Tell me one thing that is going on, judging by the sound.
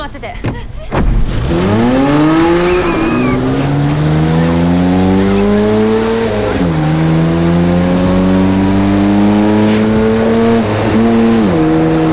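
A car engine revs hard, rising in pitch and dropping at each gear change.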